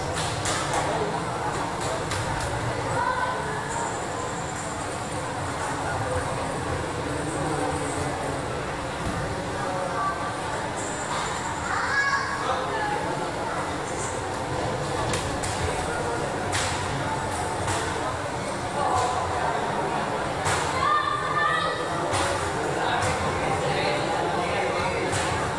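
A crowd murmurs and shouts in an echoing hall.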